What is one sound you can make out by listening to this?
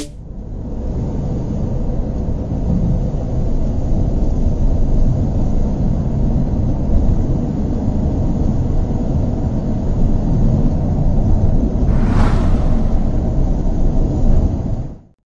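A large vehicle's engine rumbles steadily as it drives along a road.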